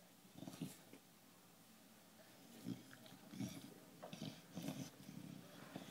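A dog chews and gnaws on a plastic bottle, crinkling it.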